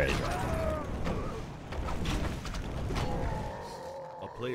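Weapons clash and thud in a video game battle.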